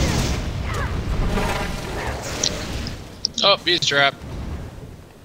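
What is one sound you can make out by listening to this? Ice crystals burst with a ringing shimmer.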